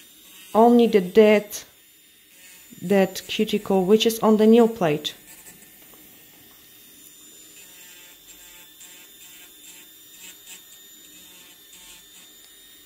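An electric nail drill whirs softly and steadily.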